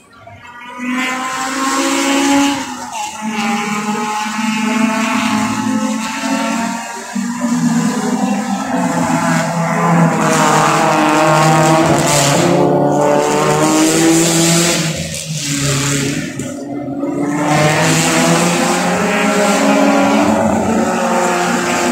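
Racing car engines roar loudly as they pass, rising and falling in pitch.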